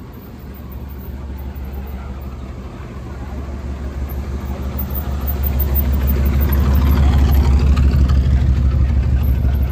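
A car engine rumbles low, growing louder as the car drives up close and passes.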